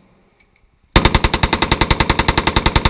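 A rifle fires a long rapid burst of shots.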